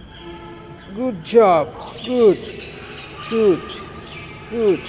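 A small child shouts playfully in a large echoing room.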